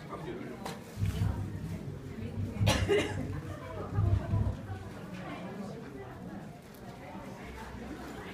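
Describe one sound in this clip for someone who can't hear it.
Women talk quietly nearby.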